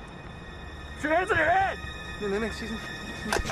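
A young man shouts a command.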